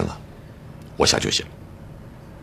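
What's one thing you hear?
Another middle-aged man answers in a low, calm voice.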